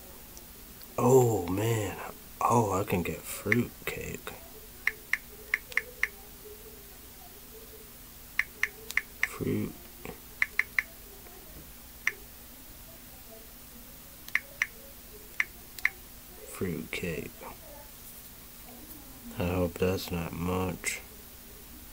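A young man speaks close to a microphone in short bursts.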